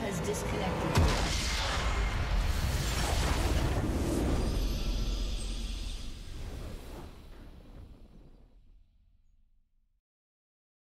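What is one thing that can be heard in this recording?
A large crystal structure bursts in a booming explosion that rumbles and fades away.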